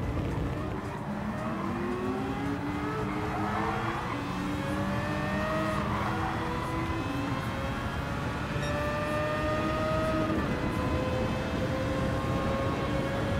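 Racing car engines roar and rise in pitch as they speed up.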